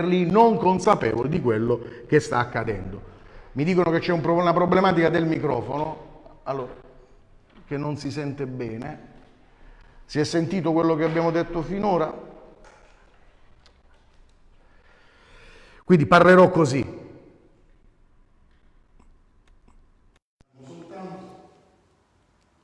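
A middle-aged man speaks with animation, close to a microphone, in short bursts with pauses.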